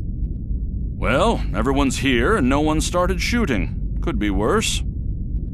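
An older man speaks calmly through a speaker.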